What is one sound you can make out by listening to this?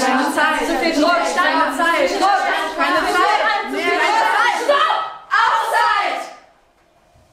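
A group of girls chants loudly together in a room.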